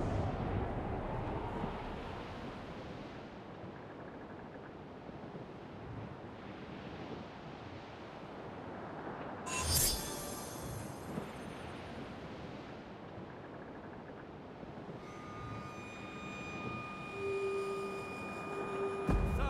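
Wind blows across open sea.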